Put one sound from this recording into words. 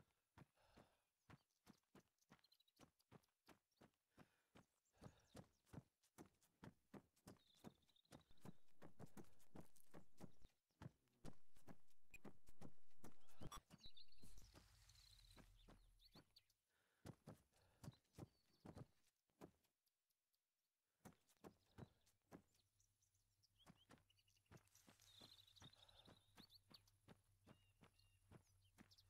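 Footsteps tread quickly and steadily on hard ground.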